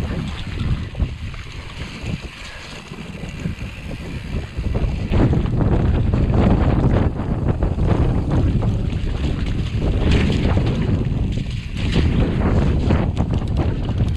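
Bicycle tyres rumble and rattle over rough, bumpy ground.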